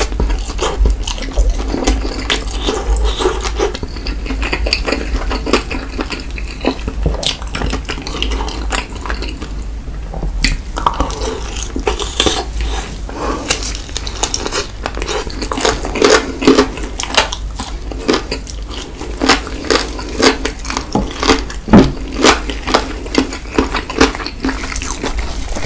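A man chews crunchy fried chicken close to a microphone.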